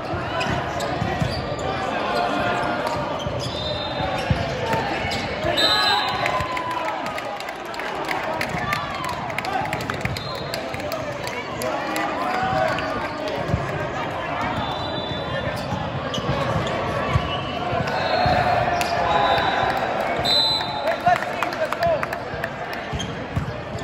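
A volleyball is struck by hand.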